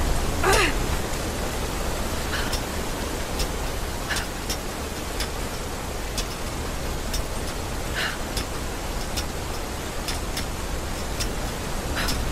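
Hands scrape and grip on rock while climbing.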